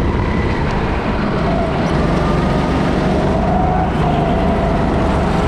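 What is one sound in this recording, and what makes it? Kart tyres squeal on the smooth floor through the bends.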